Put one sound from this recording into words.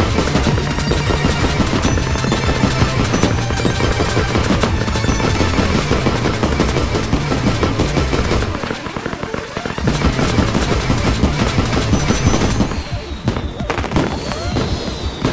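Fireworks burst and crackle.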